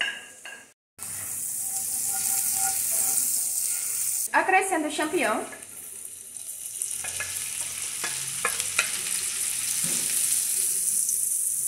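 Butter sizzles and crackles in a hot pan.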